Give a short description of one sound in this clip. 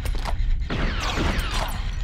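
Laser blasters fire with sharp zaps.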